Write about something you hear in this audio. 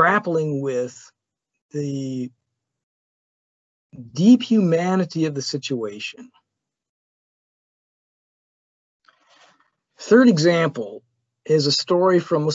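A man lectures calmly, heard through an online call.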